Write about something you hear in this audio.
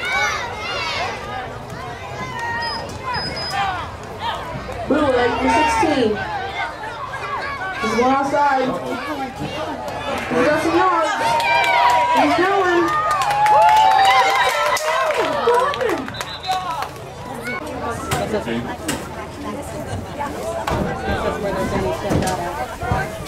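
A crowd of adults and children shout and cheer loudly outdoors.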